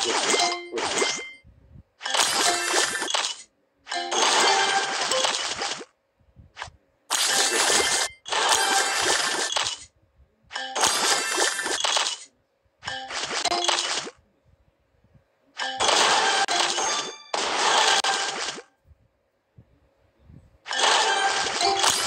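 Bright chiming game sounds ring out in bursts as pieces match and burst.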